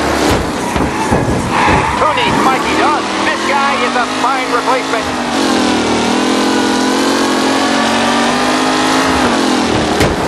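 A racing car engine roars steadily, shifting pitch as it speeds along.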